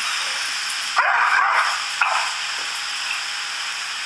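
Metal tags on a dog's collar jingle.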